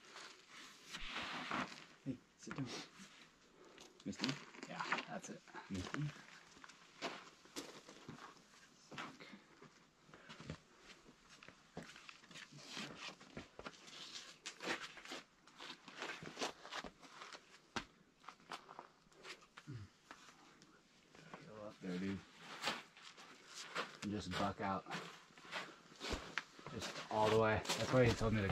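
Climbing shoes scuff and tap against rock.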